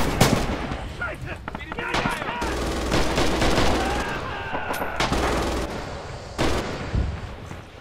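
Artillery shells explode with heavy, rumbling booms.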